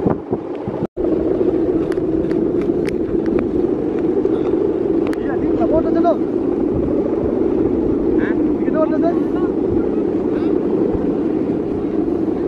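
A kite's bow hummer drones steadily overhead.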